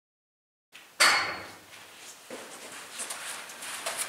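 A machine is set down on the floor with a knock.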